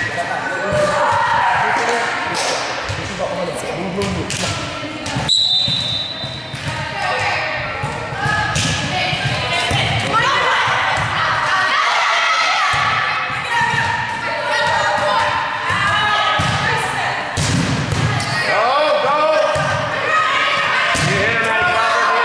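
Young women call out and talk to each other in a large echoing gym.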